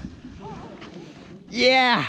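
A fish splashes into water.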